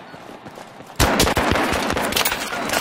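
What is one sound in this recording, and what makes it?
A rifle fires rapid, loud bursts of shots.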